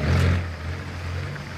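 A vehicle engine rumbles as a jeep drives along a dirt track.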